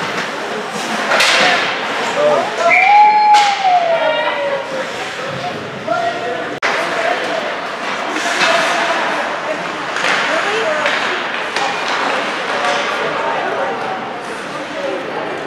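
Hockey skates scrape and carve on ice.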